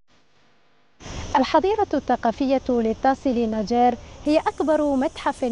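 A young woman speaks calmly and clearly into a microphone.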